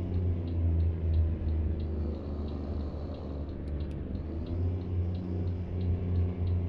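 A truck engine rumbles low and steadily.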